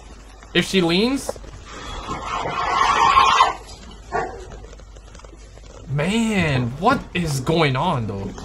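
A young man exclaims loudly and with animation into a close microphone.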